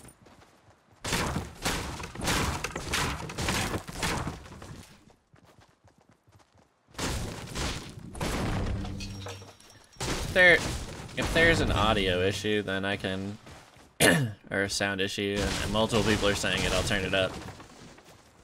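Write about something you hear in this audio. Gunshots and pickaxe hits clatter.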